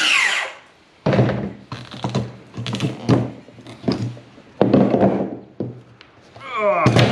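Pieces of wood knock and clatter against a workbench.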